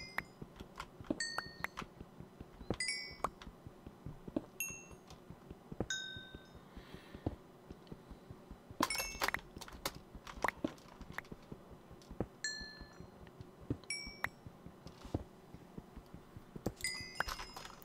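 Blocks break with short ringing pops.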